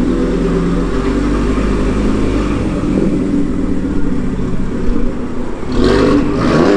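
A car engine rumbles deeply at a low idle.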